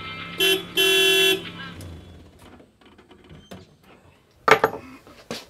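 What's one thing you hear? Small metal parts click and tap as a man tinkers with a machine.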